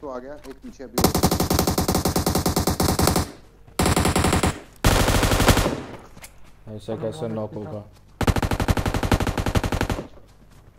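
A machine gun fires long rapid bursts.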